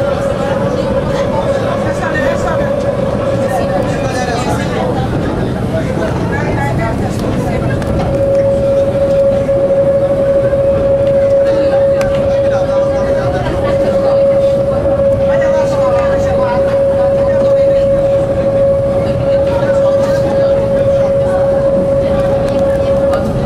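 A train's engine drones with a steady hum.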